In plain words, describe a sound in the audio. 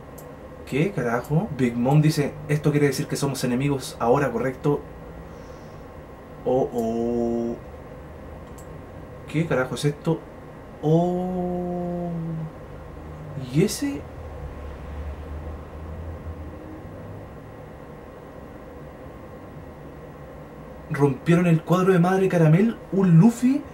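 A young man talks with animation close to a microphone, with pauses.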